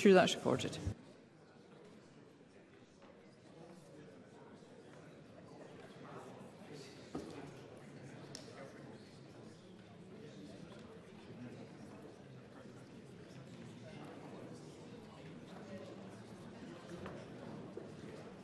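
Many people murmur quietly in a large echoing chamber.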